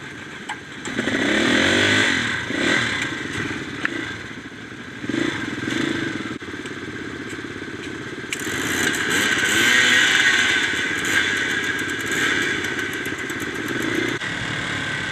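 Dirt bike engines idle and rev nearby.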